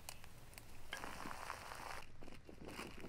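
Water bubbles at a boil in a kettle.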